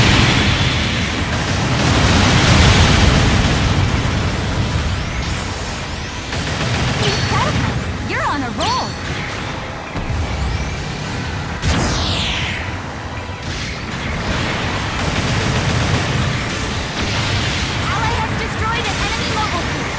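Laser guns fire in short bursts.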